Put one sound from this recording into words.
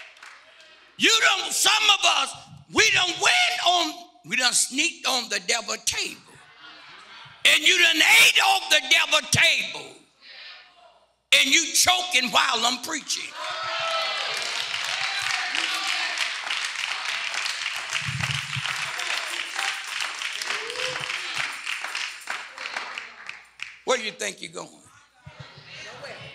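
An older man preaches with animation through a microphone in an echoing hall.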